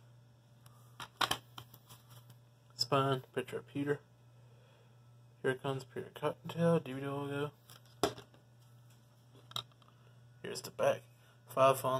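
A plastic case clicks and rattles as it is handled.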